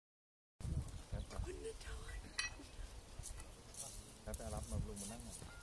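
A woman speaks calmly close by, outdoors.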